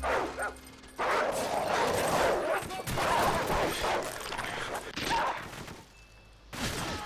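A dog snarls and growls up close.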